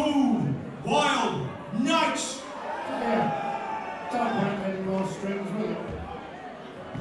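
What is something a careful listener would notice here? A man shouts with animation into a microphone.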